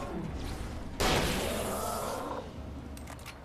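Sparks crackle and hiss after an explosion.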